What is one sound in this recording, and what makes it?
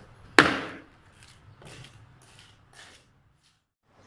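A man's footsteps and walking stick tap on a hard floor.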